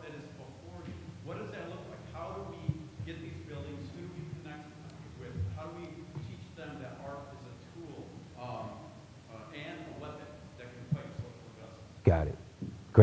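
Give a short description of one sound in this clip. A young man speaks faintly from a distance.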